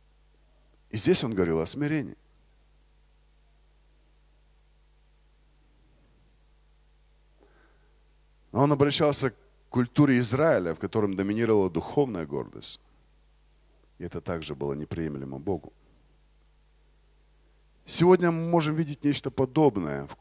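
A man speaks through a microphone in bursts, with pauses between phrases.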